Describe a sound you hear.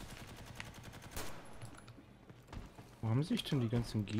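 A rifle fires a single shot.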